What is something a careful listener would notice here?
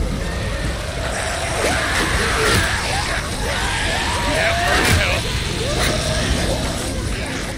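A crowd of creatures snarls and shrieks.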